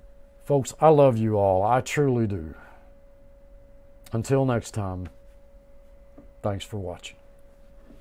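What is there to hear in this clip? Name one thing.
An elderly man speaks slowly and calmly close to a microphone.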